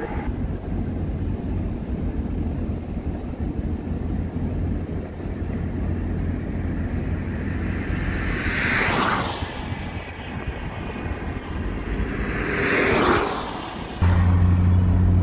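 Wind rumbles against a microphone from a moving car.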